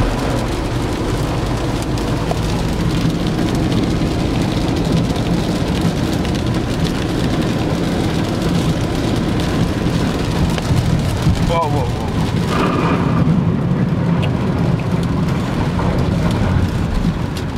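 Rain patters on the windows and roof.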